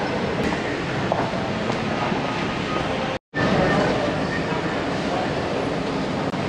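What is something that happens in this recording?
A man speaks close by, slightly muffled, in a large echoing hall.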